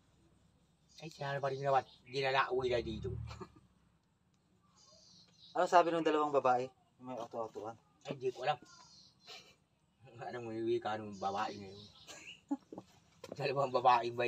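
A middle-aged man talks calmly, close by, in short bursts.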